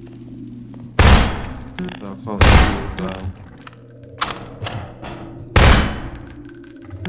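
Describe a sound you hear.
Gunshots ring out in short bursts with a ringing echo.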